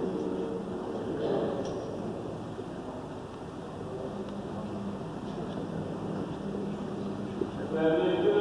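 An elderly man talks quietly with another man nearby.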